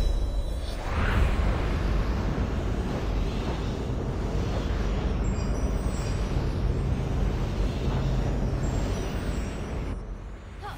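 A rushing wind roars steadily.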